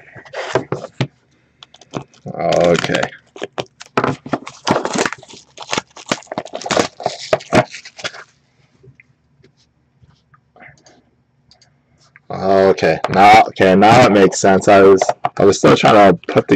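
Plastic wrap crinkles and tears as a box is unwrapped.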